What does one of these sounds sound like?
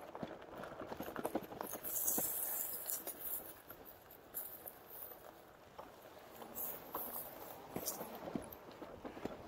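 Wind rushes and buffets against a microphone outdoors.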